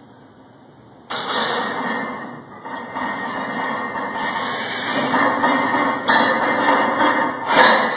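Metal weight plates clank as a man lifts a heavy barbell.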